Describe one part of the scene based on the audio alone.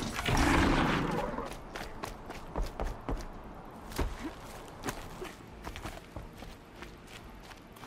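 Footsteps run over dirt and wooden planks.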